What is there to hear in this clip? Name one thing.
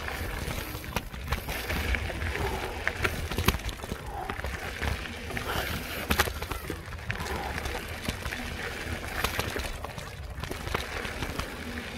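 Mountain bike tyres crunch and roll over a gravel dirt trail.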